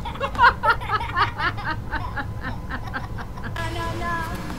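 A little girl shouts loudly.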